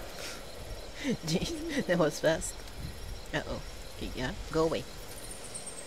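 Animals call out in short, shrill cries nearby.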